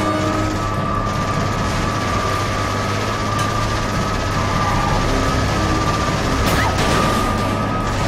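An armoured vehicle's engine rumbles steadily as it drives.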